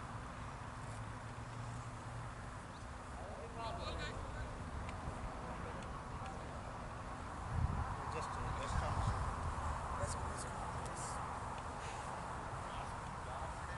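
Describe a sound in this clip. Men call out across an open field.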